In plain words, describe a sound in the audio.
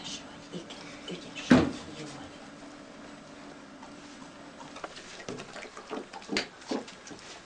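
A dog paws and scratches at fabric.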